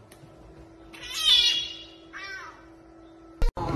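A cat meows softly.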